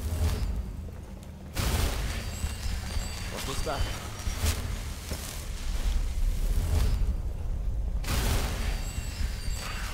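Fire spells burst with a fiery roar.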